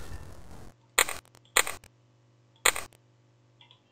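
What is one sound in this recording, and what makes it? Menu buttons click sharply several times.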